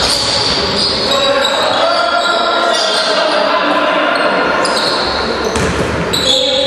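Sneakers squeak on a hard floor in an echoing hall.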